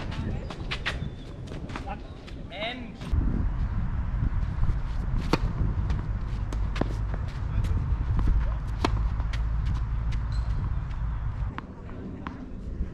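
Tennis balls are struck with rackets in a rally.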